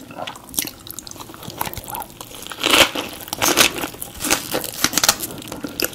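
Rice paper and crisp vegetables crunch as a woman bites into a roll.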